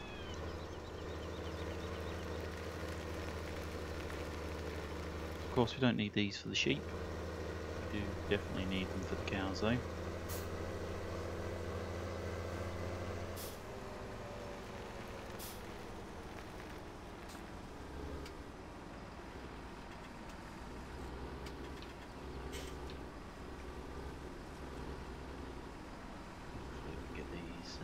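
A tractor engine drones steadily, then eases to a lower rumble.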